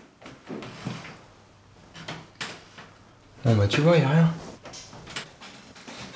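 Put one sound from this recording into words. A young man speaks with a puzzled tone.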